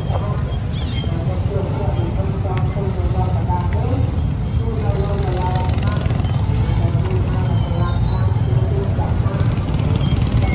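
A car engine hums at low speed.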